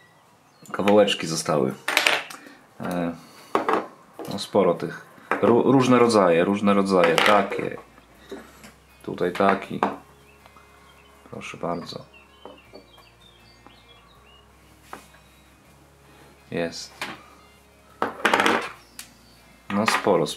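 Small metal pieces clink and tap as they are set down on a wooden table.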